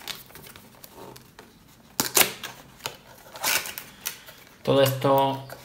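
Cardboard boxes rustle and scrape as hands handle them.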